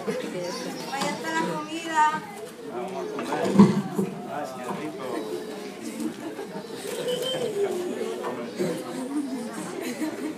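Young men and women talk and chatter nearby in a room.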